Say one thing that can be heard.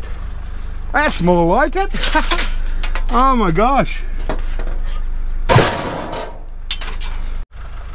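Metal rods clatter as they are pushed into a loaded van.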